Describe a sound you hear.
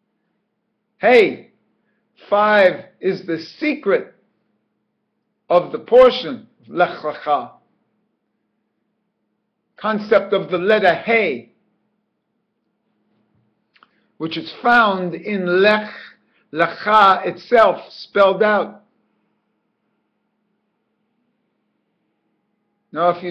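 An older man speaks calmly and close up through a microphone, in short phrases with pauses.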